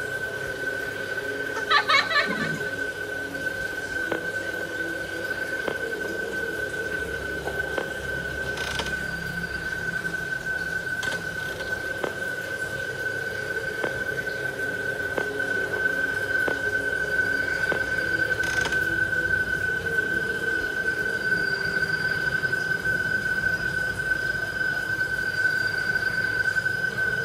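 A steady electronic hum plays from a tablet's speaker.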